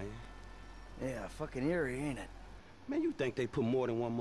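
A second man answers in a relaxed voice.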